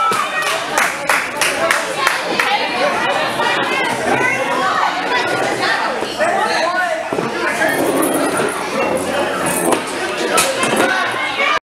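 A crowd of people chatters loudly nearby in an echoing hall.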